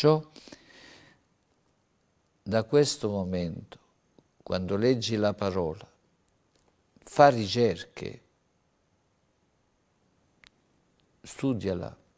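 An elderly man speaks calmly and deliberately into a microphone, with pauses between phrases.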